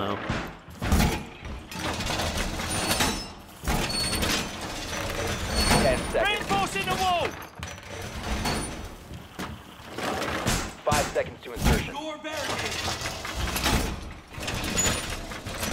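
Heavy metal panels clank and thud into place.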